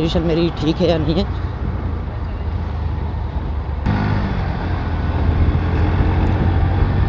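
A motorcycle engine rumbles steadily at speed.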